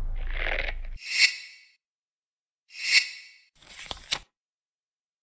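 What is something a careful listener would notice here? A game menu gives short ringing chimes.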